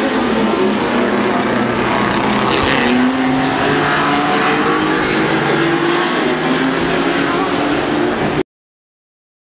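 Racing car engines roar loudly as the cars speed past outdoors.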